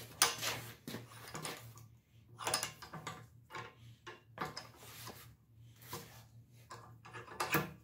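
A small hammer taps on metal.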